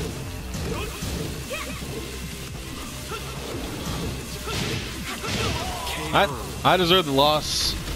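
Punches and kicks land with heavy thuds and smacks.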